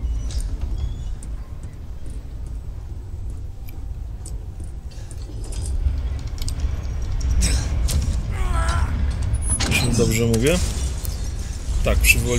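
Footsteps clank softly on a metal grating.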